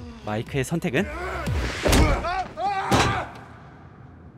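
A man shouts and screams in panic.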